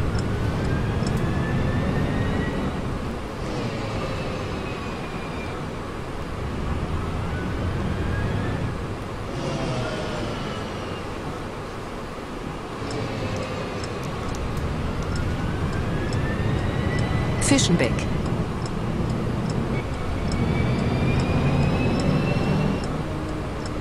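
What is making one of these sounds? A bus engine hums and repeatedly revs up as it accelerates, then drops back.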